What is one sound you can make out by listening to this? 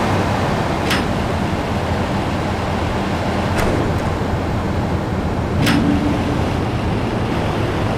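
A garage shutter rattles shut and open again.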